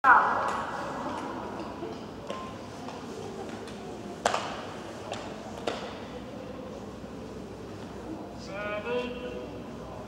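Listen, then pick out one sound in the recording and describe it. Speed skate blades glide over ice in a large echoing hall.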